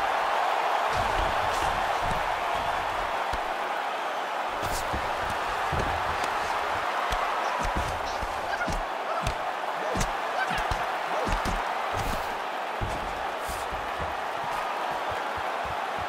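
Punches land with dull, heavy thuds.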